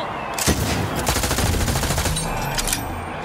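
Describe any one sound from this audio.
A gun fires rapid energy shots.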